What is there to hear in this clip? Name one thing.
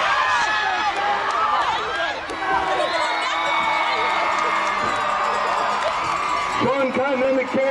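A crowd cheers in outdoor stands.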